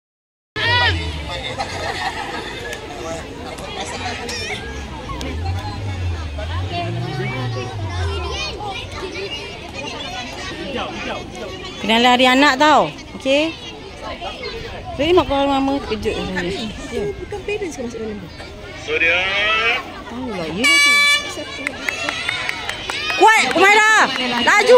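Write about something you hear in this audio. A crowd of children and adults chatters outdoors.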